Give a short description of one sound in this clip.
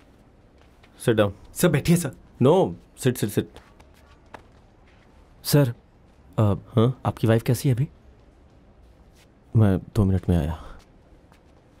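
A man speaks sharply and firmly, close by.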